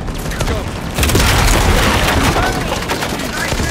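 A huge explosion booms and wood splinters crash down.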